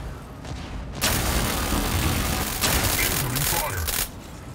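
A crackling energy beam zaps loudly.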